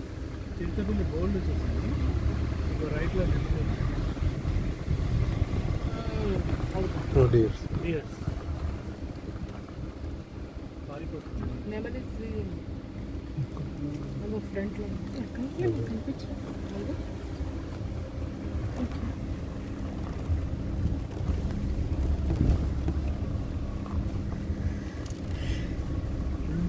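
Wind blows against the microphone outdoors.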